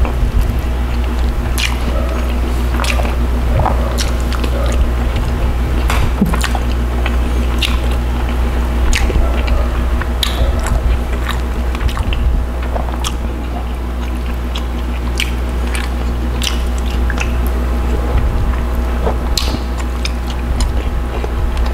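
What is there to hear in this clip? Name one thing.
A man chews food with wet smacking sounds close to a microphone.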